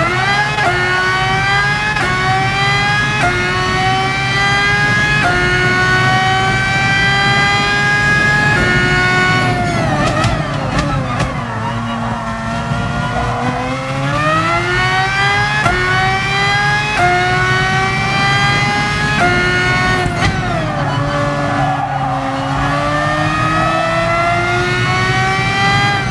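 A racing car engine roars, climbing in pitch through the gears and dropping as the car slows for corners.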